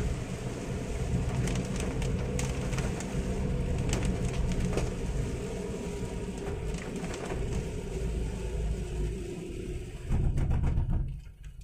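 Heavy rain drums steadily on a car windscreen.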